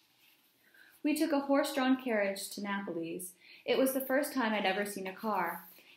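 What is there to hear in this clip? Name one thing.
A young woman reads aloud calmly, close by.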